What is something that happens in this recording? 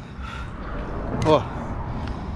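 A lighter clicks and sparks.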